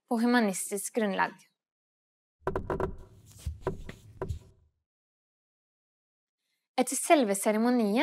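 A young woman speaks clearly and calmly into a close microphone.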